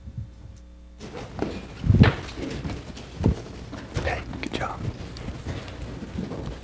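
Footsteps thump on a wooden stage.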